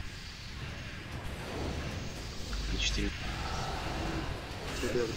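Magic spells crackle and whoosh in a battle.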